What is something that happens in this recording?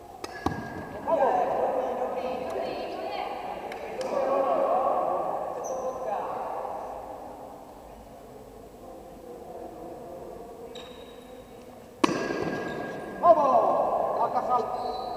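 Young players shout and cheer in a large echoing hall.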